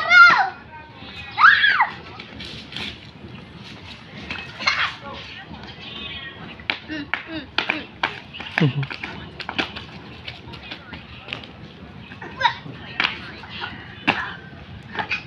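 Small children squeal and babble playfully close by.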